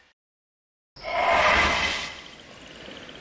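A bright magical burst rings out.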